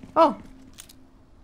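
A young woman exclaims briefly into a microphone.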